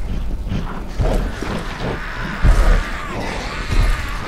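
Footsteps thud on a metal grate floor.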